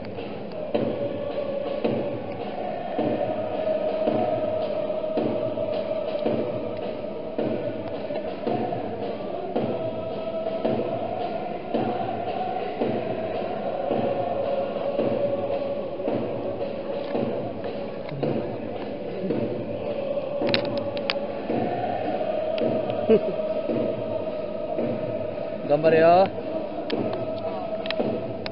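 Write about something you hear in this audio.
A large stadium crowd chants and sings in unison, echoing under the roof.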